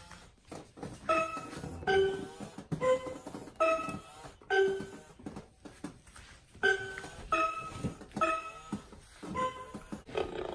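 An animatronic toy dinosaur plays a short electronic tune of repeated notes through a small loudspeaker.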